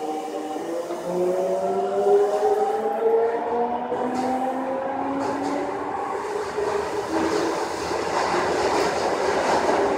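Train wheels rumble on the tracks.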